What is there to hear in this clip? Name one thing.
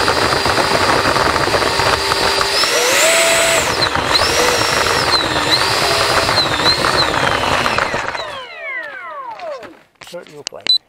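A small electric motor whines loudly, rising and falling in pitch, then winds down.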